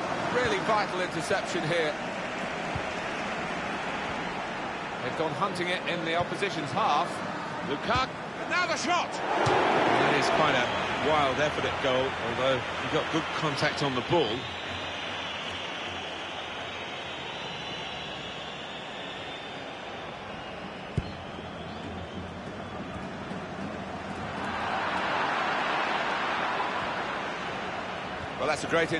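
A large stadium crowd cheers and chants steadily, swelling louder near the end.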